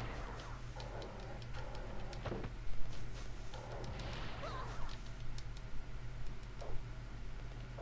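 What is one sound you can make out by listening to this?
A pistol fires a few sharp shots.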